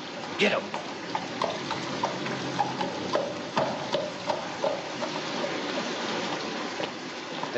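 Horse hooves clop on cobblestones as a carriage pulls away.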